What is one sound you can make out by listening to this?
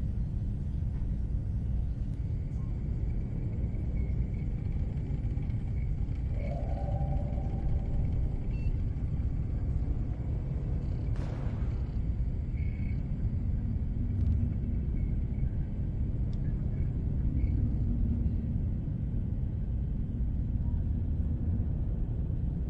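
A dog snores softly while sleeping.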